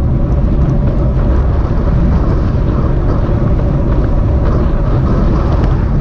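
Wind buffets loudly past a fast-moving rider.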